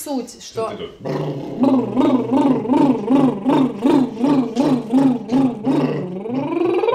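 A man sings short, rhythmic, repeated notes nearby.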